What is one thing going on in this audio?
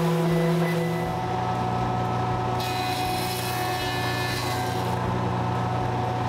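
A jointer machine hums loudly as wood is fed through its cutter.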